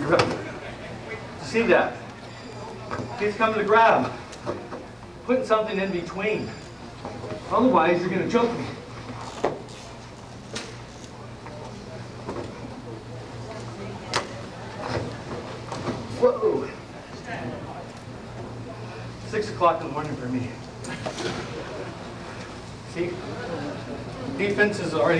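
A middle-aged man talks calmly, explaining.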